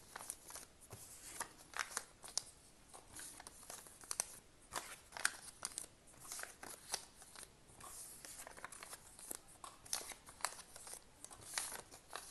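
Paper slides softly across a table.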